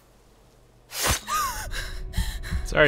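A young woman speaks, startled.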